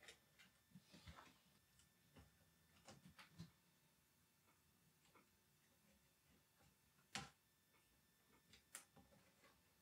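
Small metal parts click and tick faintly.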